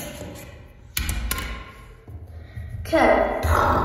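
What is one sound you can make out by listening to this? Plush toys bump and rustle against a wooden surface.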